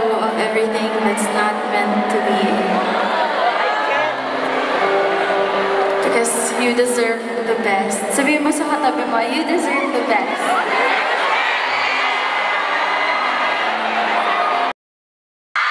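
A young woman sings into a microphone over loudspeakers.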